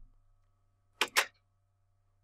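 A block clicks into place.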